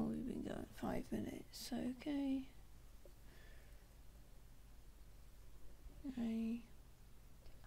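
A young woman speaks casually into a nearby microphone.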